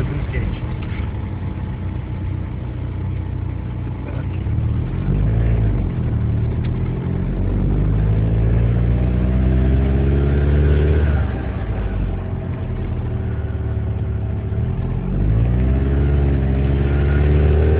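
A car engine hums and revs up as the car accelerates.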